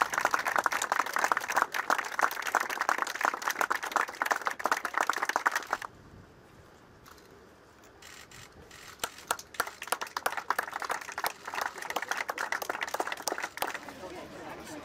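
A small group of people applauds outdoors.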